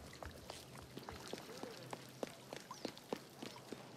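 Footsteps run quickly across a stone floor.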